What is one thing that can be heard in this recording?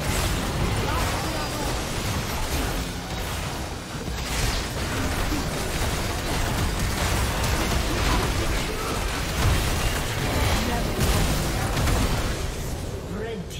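Spell blasts, clashing weapons and magic bursts crackle in a game's fight.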